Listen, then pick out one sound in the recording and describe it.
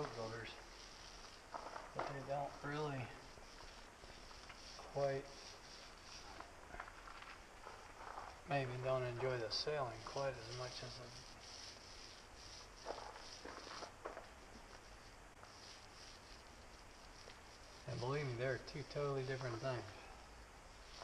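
A middle-aged man speaks calmly in short phrases, close by.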